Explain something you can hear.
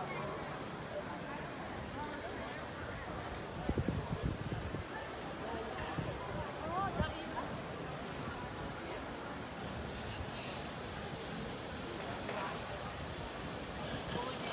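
Passers-by talk in a low murmur in an open street.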